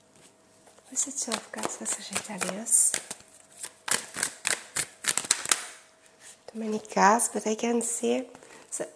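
A woman speaks calmly and close to a clip-on microphone.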